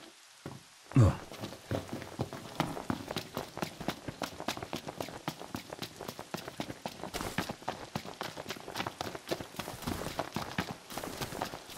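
Footsteps run quickly over stone and grass.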